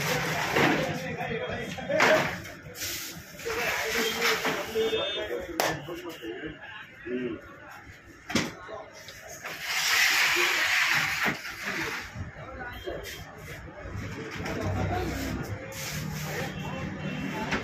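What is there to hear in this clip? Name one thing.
Plastic crates knock and clatter as they are moved.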